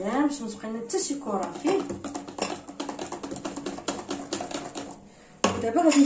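A spatula scrapes and stirs thick batter in a metal bowl.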